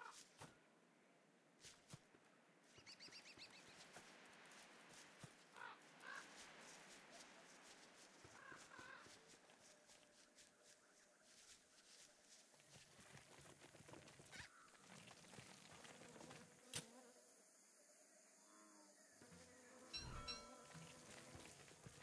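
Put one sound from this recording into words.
Footsteps patter steadily over grass.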